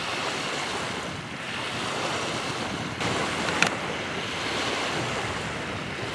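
Wind blows steadily across open water outdoors.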